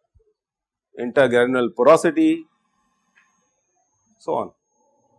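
A middle-aged man speaks calmly through a clip-on microphone.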